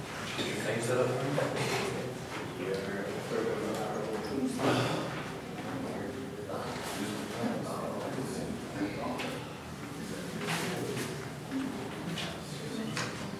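A young woman speaks steadily to a room, heard from a distance.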